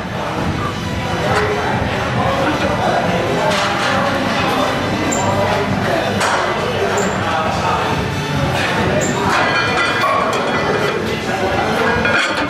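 Weight plates clank as a man lifts a barbell.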